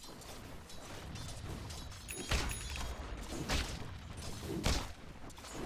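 Game characters clash in battle with a steady stream of hits and spell effects.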